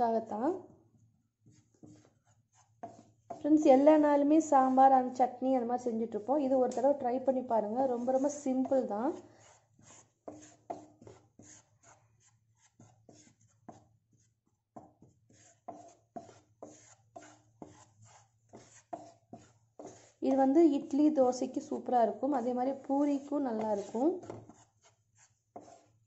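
A wooden spatula scrapes and stirs dry powder in a pan.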